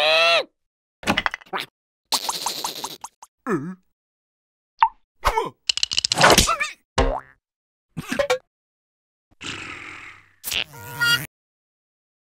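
A second cartoon voice grumbles and whimpers in short bursts.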